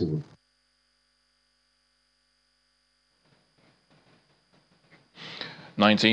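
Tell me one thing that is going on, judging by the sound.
An older man speaks quietly into microphones.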